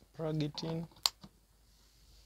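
A plug clicks into a wall socket.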